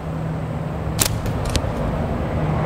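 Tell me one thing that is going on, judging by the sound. A slingshot's rubber bands snap as a shot is released.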